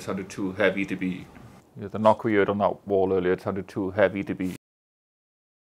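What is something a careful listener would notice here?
A man speaks with animation close to a microphone.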